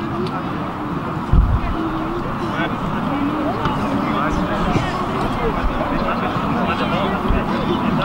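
Young players talk and call out nearby outdoors.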